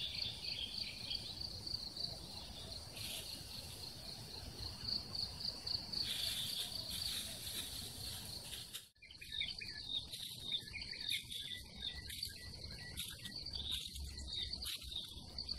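A person scrapes and pulls at dry soil by hand.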